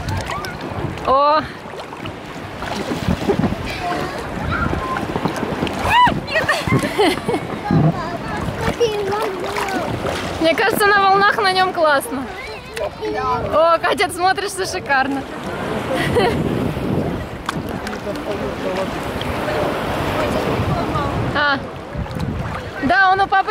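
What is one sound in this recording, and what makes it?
A little girl shrieks and calls out in a high voice.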